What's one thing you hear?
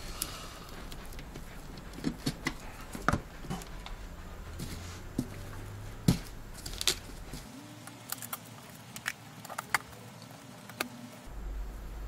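Plastic and metal parts click and knock as computer components are fitted together by hand.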